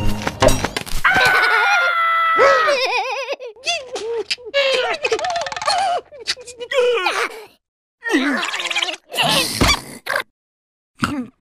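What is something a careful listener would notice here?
High, squeaky cartoon voices shriek and babble excitedly.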